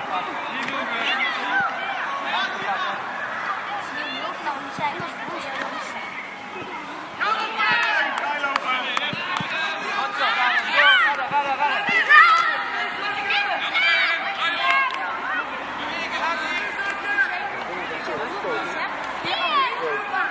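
Children and adults shout and call out across an open field.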